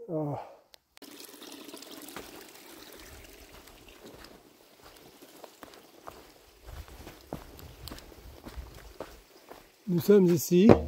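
Footsteps crunch on a forest trail.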